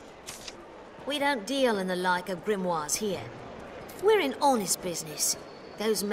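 A young woman speaks firmly and dismissively, close by.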